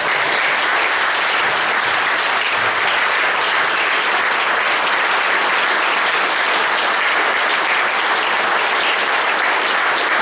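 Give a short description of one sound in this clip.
A group of people applaud steadily in an echoing hall.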